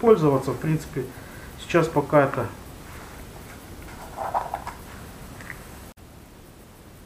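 A plastic packet crinkles as it is handled.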